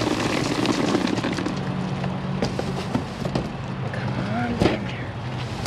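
Plastic wrapping crinkles and rustles up close.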